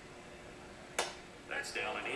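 A baseball smacks into a catcher's mitt, heard through a television speaker.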